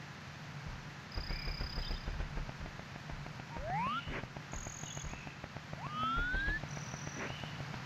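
Cartoon footsteps patter as a character runs in a video game.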